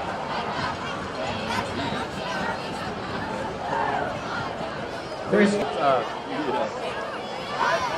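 A large crowd of people chatters and cheers outdoors.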